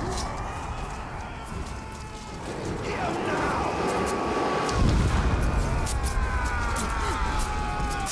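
Many creatures clash and shout in battle.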